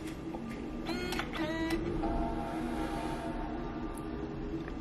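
A laptop plays its startup chime.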